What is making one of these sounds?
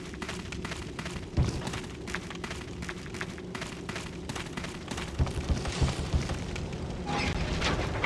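Footsteps run quickly across a wooden floor.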